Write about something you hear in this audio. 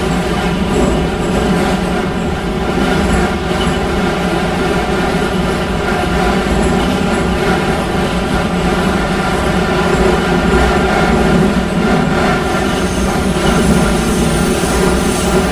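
A train rumbles and rattles steadily along the rails through a tunnel.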